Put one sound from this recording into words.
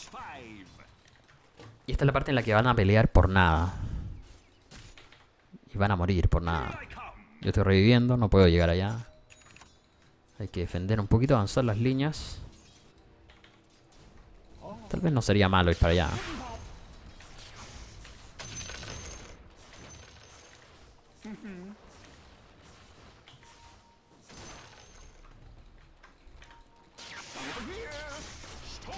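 Game sound effects clash and chime.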